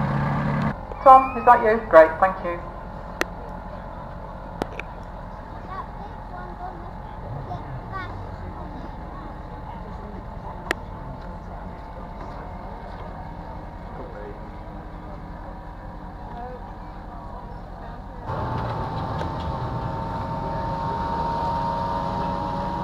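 A speedboat engine drones steadily across open water.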